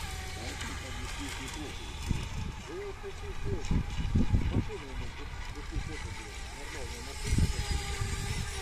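A small motorboat buzzes across the water at a distance.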